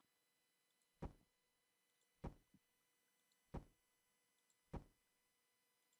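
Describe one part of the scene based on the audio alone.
Heavy blocks thud into place one after another.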